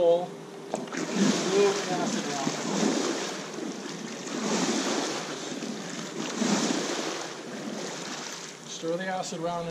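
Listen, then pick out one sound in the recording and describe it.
Water swishes as a pool brush sweeps underwater.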